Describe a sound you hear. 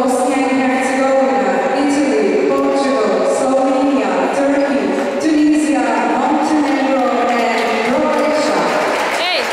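A crowd sings a slow anthem in a large echoing hall.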